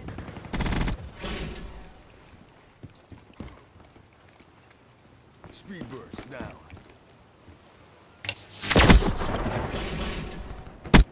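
A gun fires loud rapid bursts of shots.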